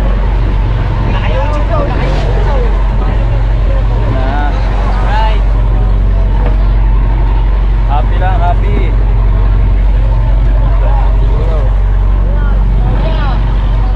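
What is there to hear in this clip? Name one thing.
Men call out and talk to each other over the engine noise.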